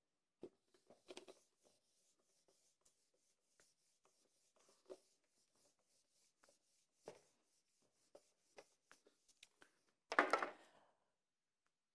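An eraser rubs and squeaks on a whiteboard.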